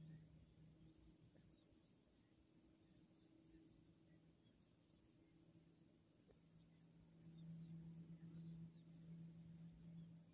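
An outdoor air conditioner unit hums steadily with a low drone.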